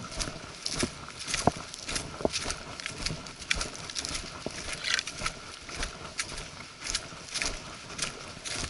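Footsteps crunch steadily on dry leaves and twigs.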